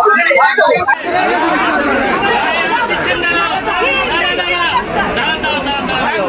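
A crowd of people talk and shout over one another.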